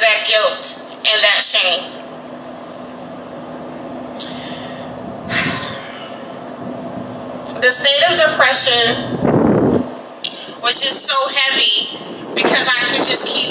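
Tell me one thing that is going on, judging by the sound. A young woman speaks calmly into a microphone through a loudspeaker, outdoors.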